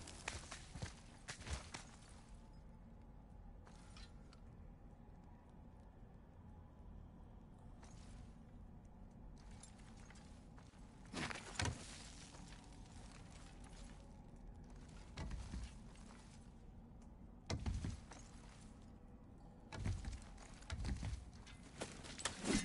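Hands and boots thud and scrape on rock while climbing.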